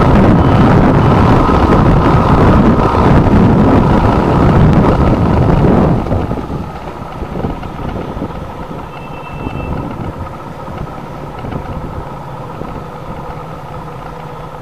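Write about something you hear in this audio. Heavy rain spatters and hisses steadily.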